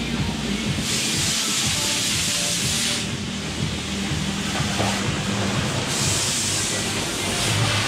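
A pressure washer sprays water in a loud hissing jet.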